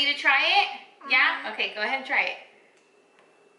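A young girl talks excitedly close by.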